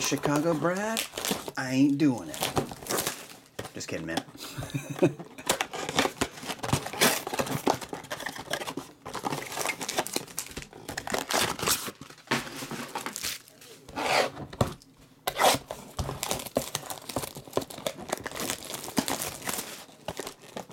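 Plastic wrap crinkles and tears close by.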